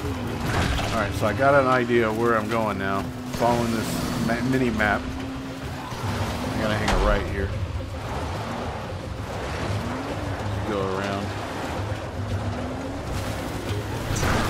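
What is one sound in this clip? A buggy engine rumbles steadily as it drives.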